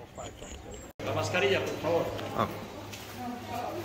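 Adult visitors chatter nearby in a hall with a slight echo.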